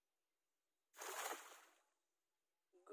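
A cast net splashes down onto water.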